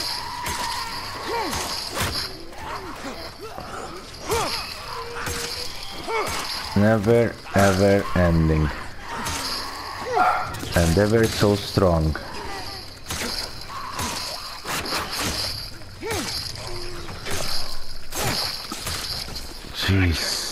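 Heavy blows thud and smack in a close fight.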